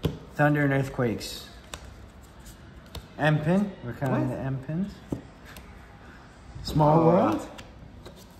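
Playing cards tap and slide onto a table.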